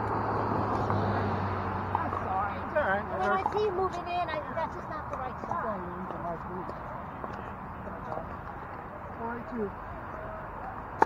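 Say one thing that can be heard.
Men and women talk nearby and in the distance.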